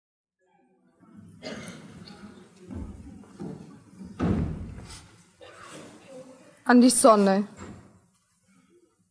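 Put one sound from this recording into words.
A woman speaks quietly and slowly.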